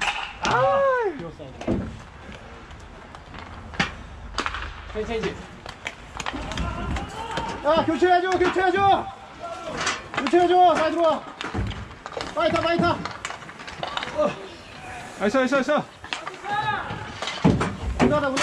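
Hockey sticks clack against a ball and the rink floor.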